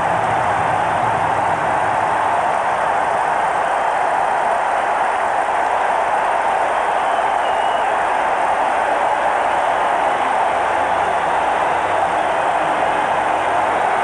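Men cheer and shout close by.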